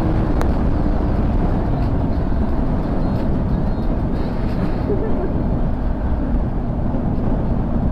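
Wind rushes loudly and steadily past a motorcycle rider at speed.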